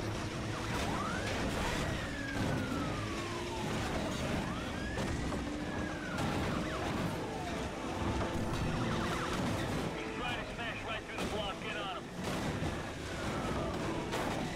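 Police sirens wail, rising and falling in pitch.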